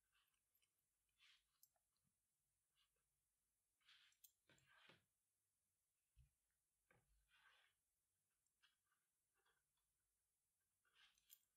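Cord rustles and rubs softly as hands tighten a braid.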